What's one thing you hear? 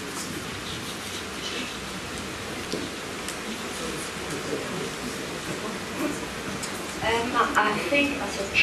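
A crowd murmurs and chatters in a room.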